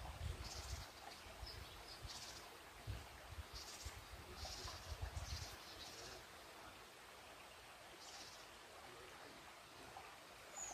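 Wind gusts outdoors and rustles the leaves of trees.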